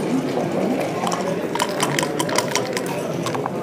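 Dice rattle and clatter onto a wooden board.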